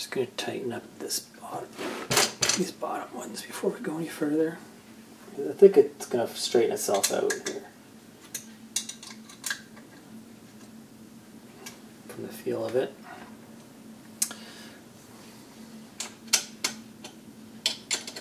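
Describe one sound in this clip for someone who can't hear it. Metal parts clunk and rattle as a frame is handled.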